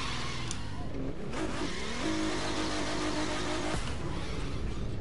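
A car's tyres screech as it drifts.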